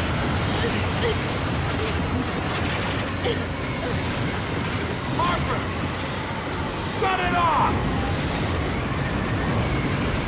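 A young woman cries out.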